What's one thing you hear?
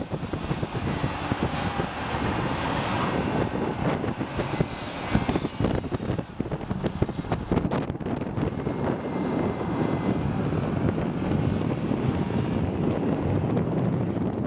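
A twin-turbo V8 performance SUV drives hard at speed.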